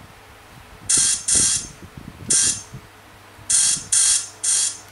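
A finger taps softly on a touchscreen.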